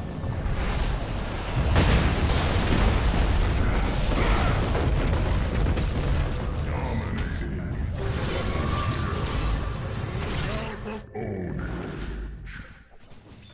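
Magic spells crackle and boom loudly in a fight.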